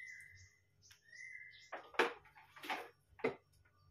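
A glass jar is set down with a knock on a wooden board.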